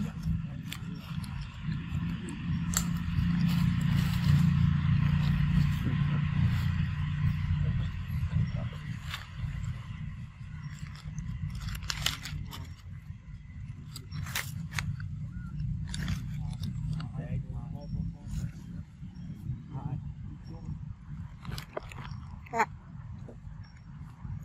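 A young macaque chews and smacks on ripe mango.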